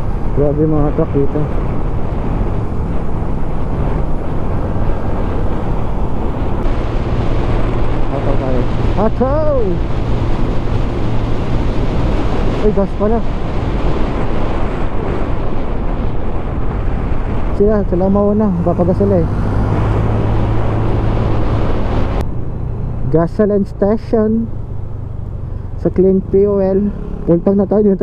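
A motorcycle engine hums steadily as the bike rides along.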